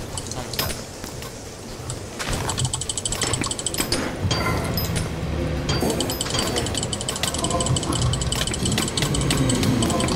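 A sword strikes blows in quick succession during a fight.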